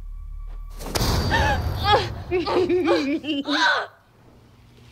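A girl speaks in an eerie, teasing voice.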